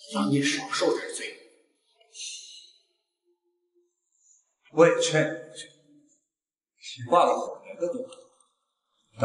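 A middle-aged man speaks sternly, close by.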